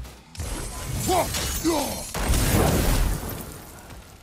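A magical blast bursts with a loud rushing whoosh.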